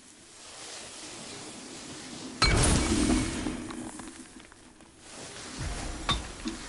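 Flames crackle and hiss.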